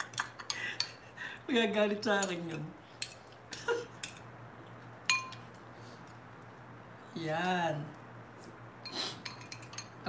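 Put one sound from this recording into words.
A fork and spoon clink and scrape against a glass bowl.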